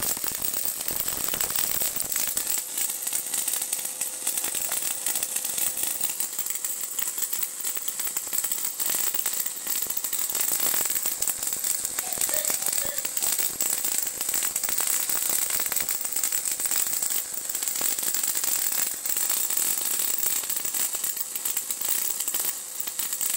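An electrical hum drones steadily.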